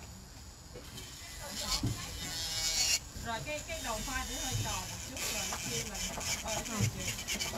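A small metal tool scrapes against a fingernail.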